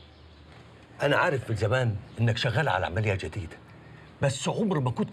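An older man speaks firmly and with animation, close by.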